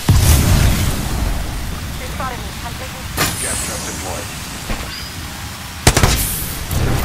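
Gunfire bursts rapidly at close range.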